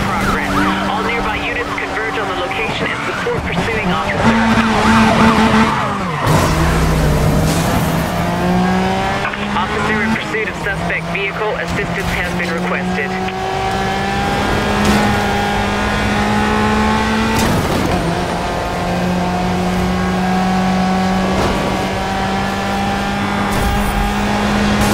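A racing car engine roars at high speed, its pitch climbing and dropping with each gear change.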